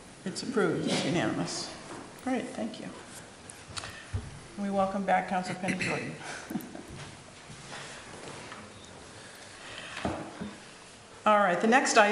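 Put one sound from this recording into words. A woman speaks into a microphone in a large room.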